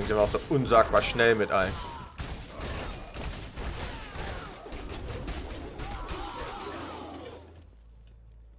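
Weapons strike and spells burst in a rapid, noisy fight.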